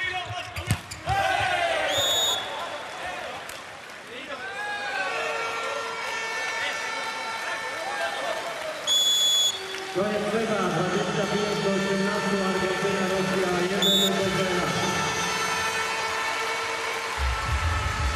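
A large crowd cheers and chants in an echoing arena.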